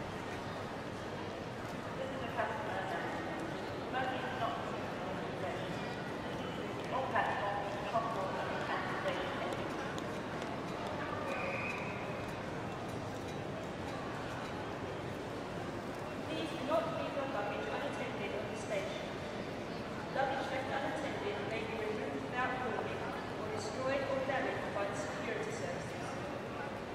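People talk indistinctly in a large, echoing hall.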